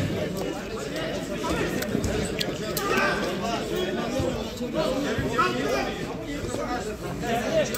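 Men shout to each other during a football match outdoors.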